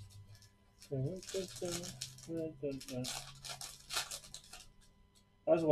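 A foil card pack crinkles and rustles as it is torn open.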